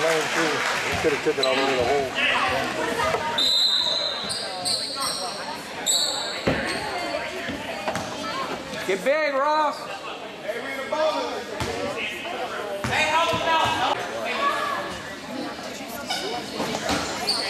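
A crowd of people chatters nearby in a large echoing hall.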